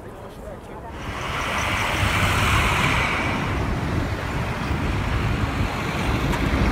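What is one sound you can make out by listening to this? Traffic rumbles and roars along a busy street.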